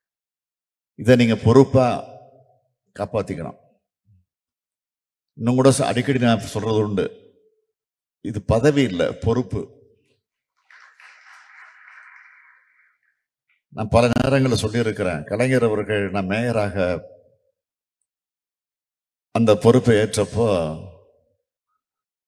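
A middle-aged man speaks forcefully into a microphone through loudspeakers.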